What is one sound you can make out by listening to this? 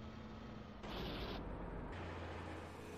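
A truck crashes down with a loud thud.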